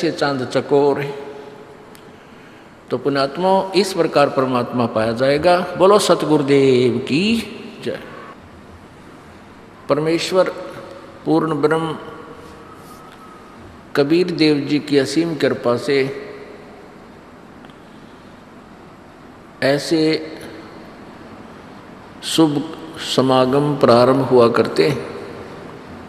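An elderly man speaks calmly into a microphone, pausing often.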